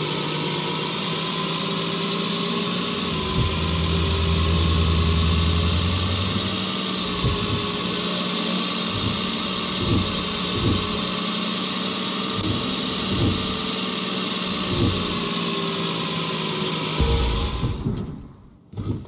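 A car engine drones steadily, then stops.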